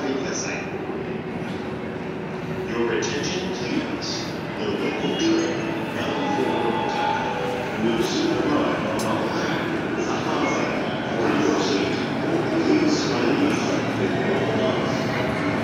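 Voices of people murmur and echo through a large open space.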